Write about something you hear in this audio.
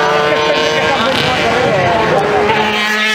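A sport motorcycle races past close by.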